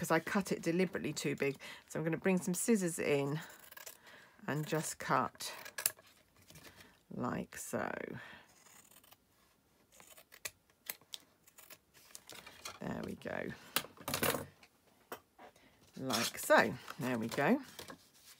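Paper rustles as it is handled.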